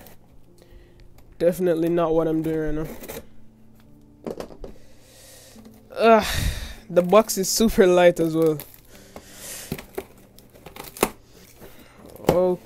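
A cardboard box scrapes and thumps on a table.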